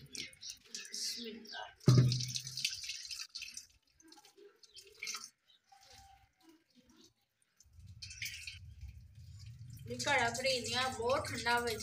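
Water trickles from a tap into a clay pot.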